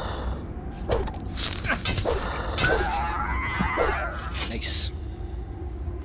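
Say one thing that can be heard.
A sword swings and strikes a creature.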